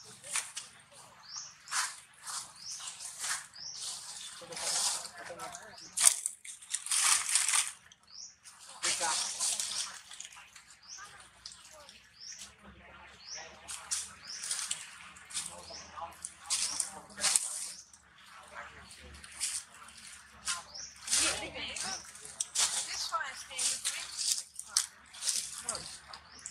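A monkey rustles and crunches through dry leaves close by.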